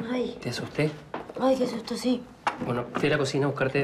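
A tray with dishes clatters down onto a table.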